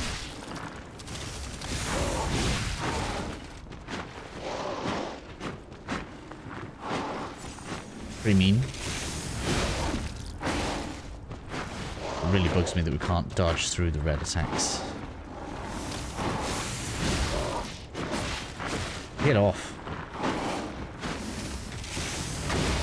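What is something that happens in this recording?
Heavy sword blows clash and thud against a monster.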